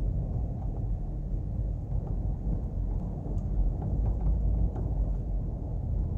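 A van passes by in the opposite direction.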